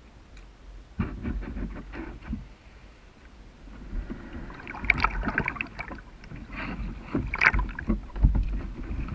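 A plastic kayak hull thumps and scrapes as a man climbs aboard.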